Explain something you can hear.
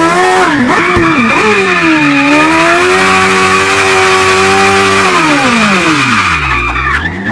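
Tyres squeal and screech on tarmac during a skid.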